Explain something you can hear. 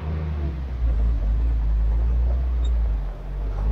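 Tyres crunch slowly over a gravel track.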